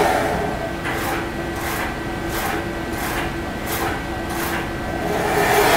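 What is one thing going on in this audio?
A machine clicks and whirs in a steady rhythm.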